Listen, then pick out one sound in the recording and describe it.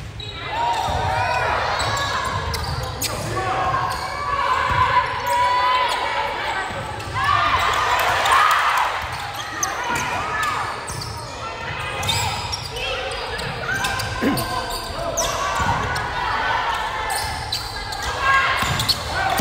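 Players' shoes squeak on the wooden floor.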